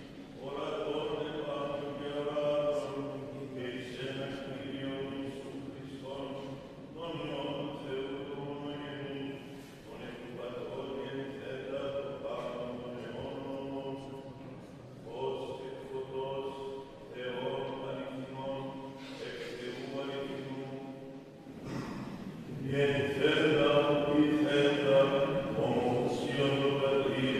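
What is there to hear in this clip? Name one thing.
An elderly man chants in a slow, steady voice through a microphone, echoing in a large hall.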